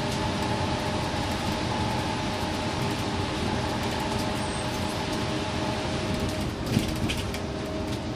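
A bus engine hums steadily while driving on a highway.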